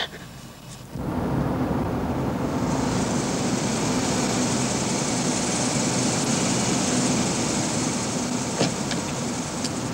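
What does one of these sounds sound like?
A car engine rumbles as a car rolls up outdoors.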